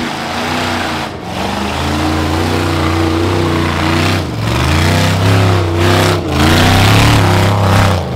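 An off-road buggy engine revs loudly in bursts as it climbs over rocks.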